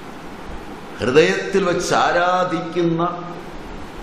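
An elderly man speaks into a microphone in a slow, chanting voice.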